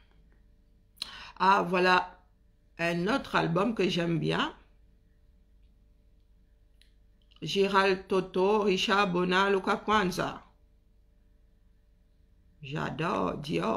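A woman speaks calmly and close to the microphone, in short bursts with pauses.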